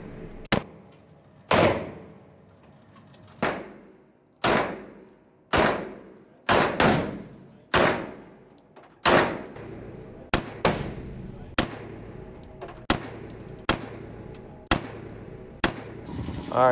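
Gunshots crack and boom one after another, echoing in a large hard room.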